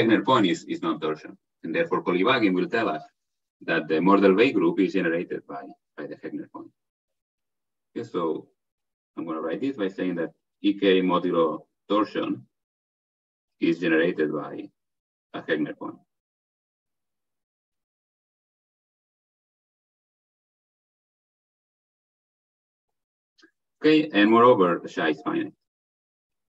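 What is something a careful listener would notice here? A man lectures calmly over an online call, with pauses.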